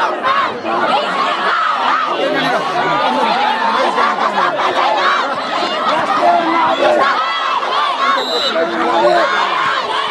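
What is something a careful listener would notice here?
A large outdoor crowd chatters and shouts continuously.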